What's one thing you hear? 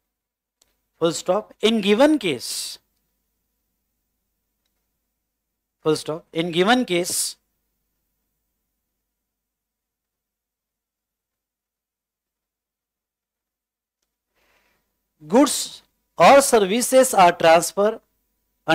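A man speaks calmly into a close microphone, in short bursts with long pauses.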